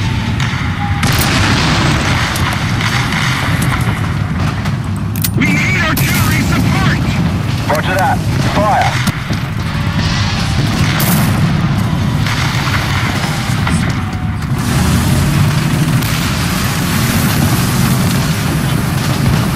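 A tank engine rumbles steadily and deeply.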